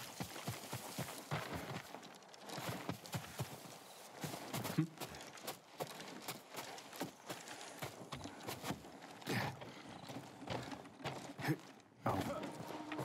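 Footsteps rustle through grass and creak on wood.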